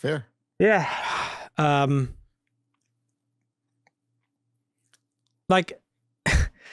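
A man speaks animatedly into a close microphone.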